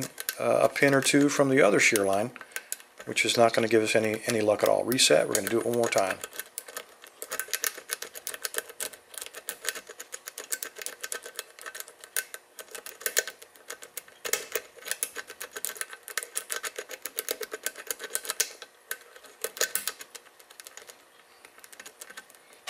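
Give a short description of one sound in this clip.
Metal picks click and scrape softly inside a lock.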